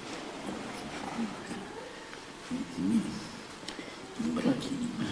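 An elderly man chants slowly in a low voice.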